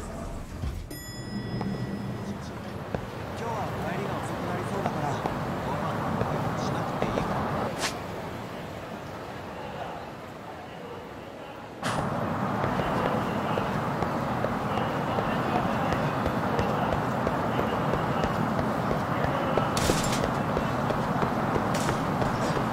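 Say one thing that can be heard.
A busy city street hums with distant traffic.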